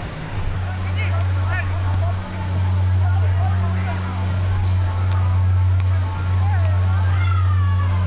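Adult men call out to each other across an open field.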